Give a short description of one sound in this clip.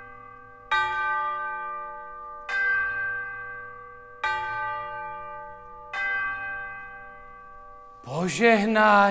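An orchestra plays four short ringing chords that fade away.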